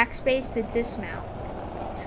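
Skateboard wheels roll over pavement.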